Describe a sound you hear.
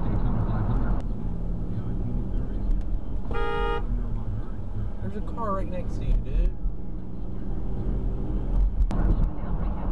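A car engine idles with a low hum.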